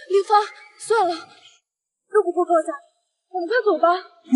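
A young woman speaks tearfully.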